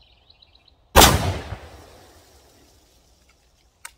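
A shotgun fires a loud shot that echoes outdoors.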